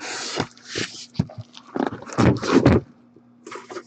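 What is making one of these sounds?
Plastic packaging rustles and clicks in hands.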